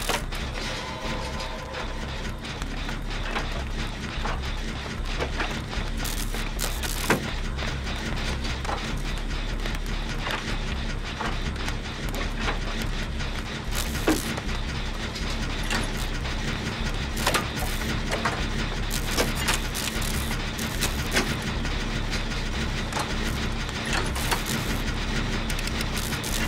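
A generator engine rattles and clanks steadily.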